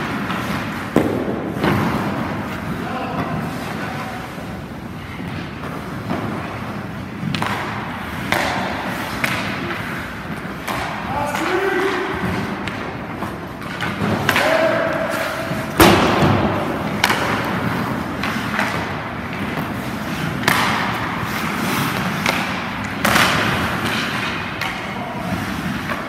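Ice skates scrape and carve across ice in a large echoing rink.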